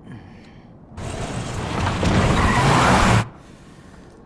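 A van engine roars loudly.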